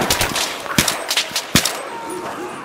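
Rapid gunshots crack sharply and echo.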